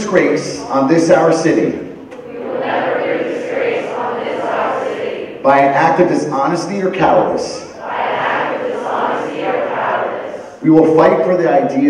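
A group of teenagers on stage recites an oath in unison through a microphone in a large echoing hall.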